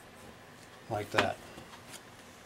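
Strips of card slide and tap on a board.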